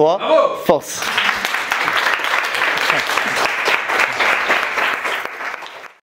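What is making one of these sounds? A crowd of young people claps and cheers.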